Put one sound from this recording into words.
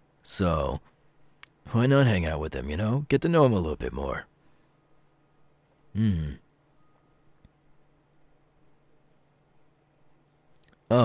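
A young man speaks softly and close to the microphone, in short bursts.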